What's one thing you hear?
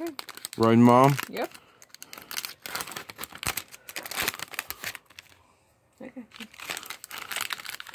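Plastic packaging crinkles and rustles close by.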